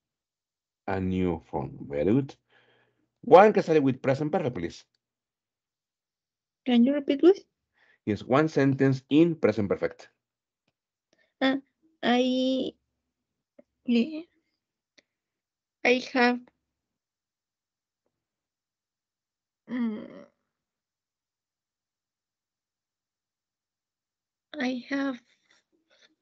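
A man speaks calmly through a headset microphone over an online call, with pauses.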